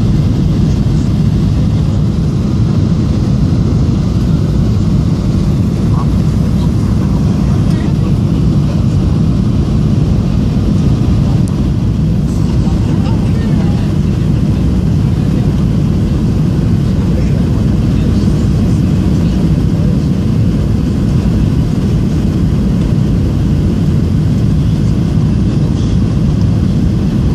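Air rushes past the airplane with a steady low rumble.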